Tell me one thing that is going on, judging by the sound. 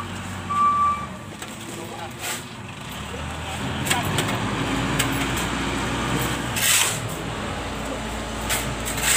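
A shovel scrapes and digs into sand.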